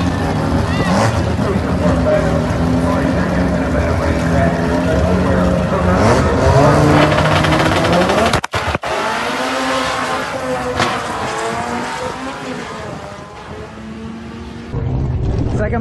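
Race car engines rumble and rev loudly.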